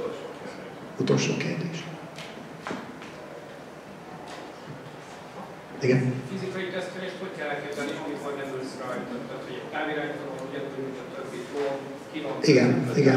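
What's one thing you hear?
A man speaks into a microphone over a loudspeaker in an echoing hall.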